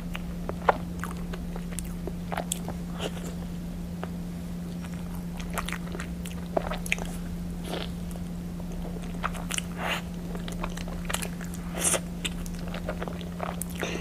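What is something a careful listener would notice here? Plastic wrap crinkles as a young woman unwraps food.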